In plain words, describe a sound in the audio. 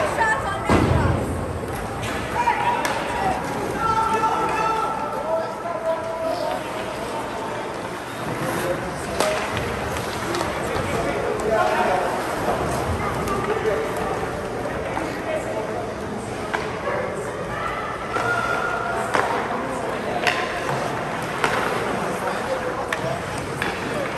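Skates scrape and hiss on ice in a large echoing rink.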